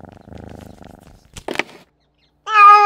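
A cat laps from a bowl.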